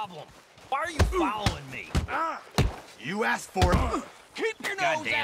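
Punches land with heavy thuds.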